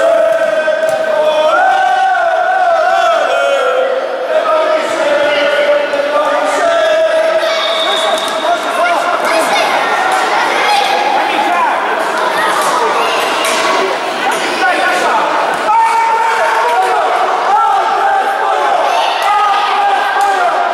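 Children shout and call out in a large echoing hall.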